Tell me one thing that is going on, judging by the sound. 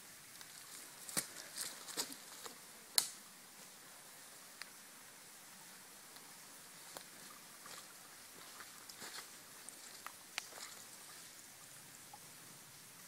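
Footsteps crunch on leaves and twigs.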